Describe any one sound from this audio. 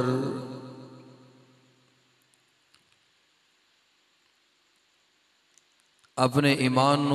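A man recites in a loud, drawn-out voice through a microphone, with a long echo.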